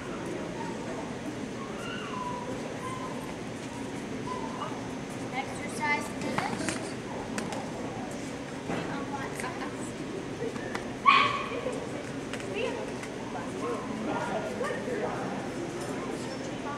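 A woman speaks to a dog nearby.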